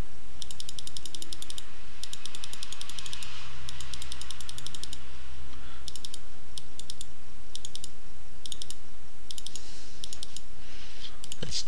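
Rapid soft clicks come in short bursts.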